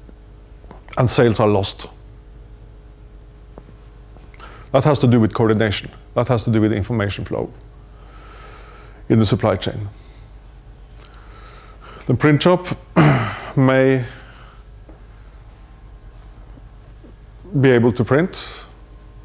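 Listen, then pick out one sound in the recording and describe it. A man lectures in short bursts, heard through a microphone in a large echoing hall.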